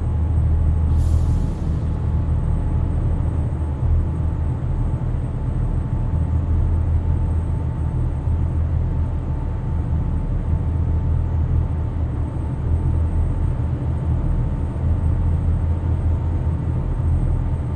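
Tyres roll steadily on the road.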